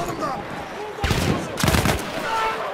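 A submachine gun fires a short burst close by.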